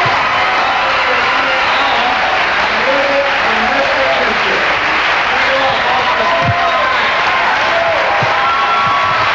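A man speaks to an audience through a microphone.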